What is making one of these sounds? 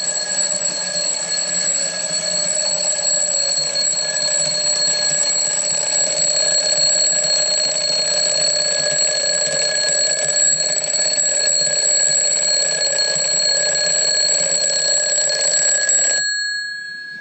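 An alarm clock rings loudly and steadily, then stops.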